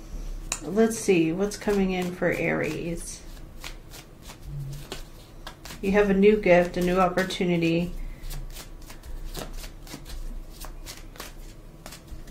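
Cards riffle and tap as a deck is shuffled.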